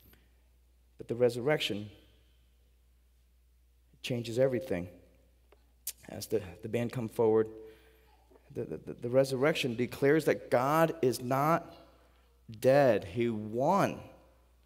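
A man speaks slowly and with emphasis through a microphone, with pauses.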